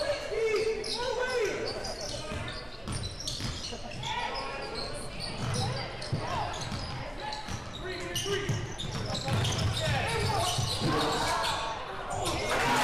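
Spectators in a large echoing gym chatter and call out.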